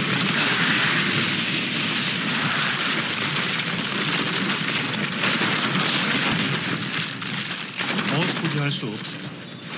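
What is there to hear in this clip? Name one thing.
Magic spells crackle and burst in rapid succession.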